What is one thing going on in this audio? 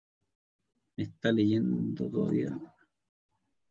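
A man speaks calmly into a microphone, heard over an online call.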